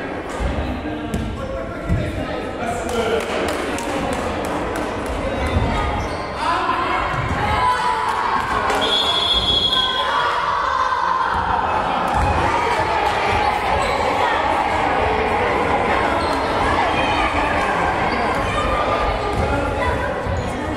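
Children shout and call out in a large echoing gym.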